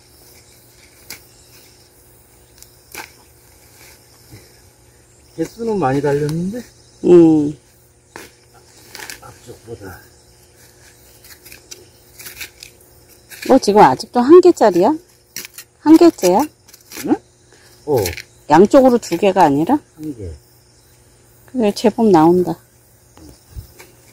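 Hands scrape and dig through loose soil.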